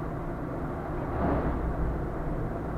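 A bus rushes past in the opposite direction with a brief whoosh.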